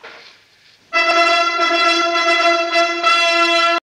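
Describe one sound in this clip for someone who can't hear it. An orchestra plays a sustained chord.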